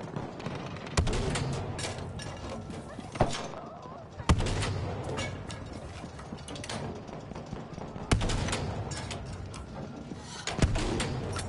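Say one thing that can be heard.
A rifle fires loud single shots with a booming echo.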